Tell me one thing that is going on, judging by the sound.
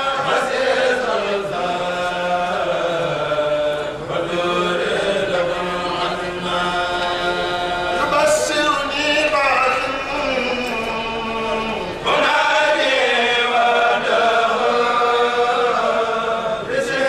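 A group of men chant together in unison through microphones.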